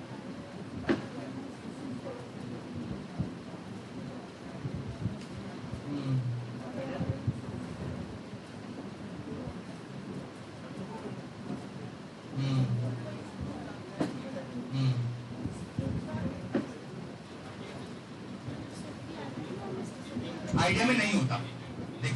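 A man speaks to an audience in a large room, heard from a distance with some echo.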